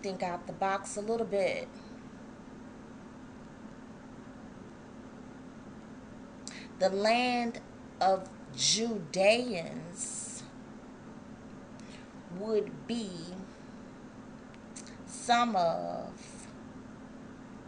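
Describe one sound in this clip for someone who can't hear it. A woman talks calmly and close to a microphone, with pauses.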